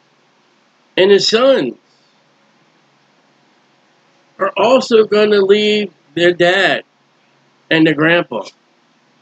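A middle-aged man reads out calmly into a microphone, with pauses.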